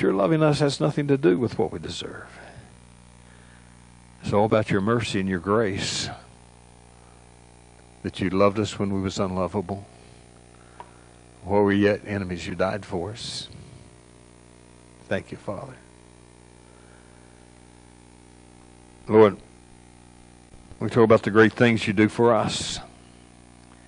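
An elderly man speaks calmly into a microphone in a large echoing room, pausing between phrases.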